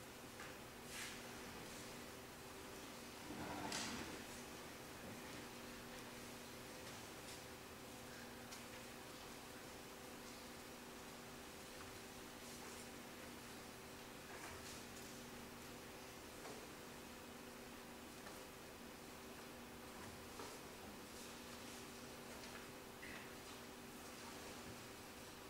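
A string quartet plays soft, slow, sustained chords.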